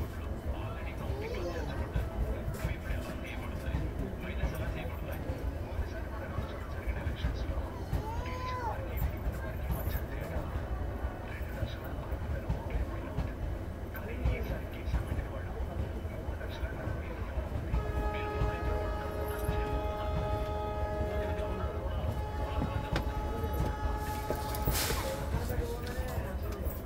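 A passenger train rumbles past close by, its wheels clattering steadily over the rail joints.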